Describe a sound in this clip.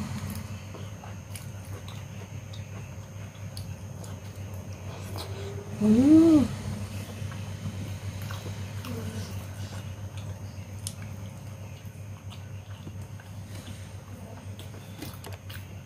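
A woman chews food loudly and wetly close to a microphone.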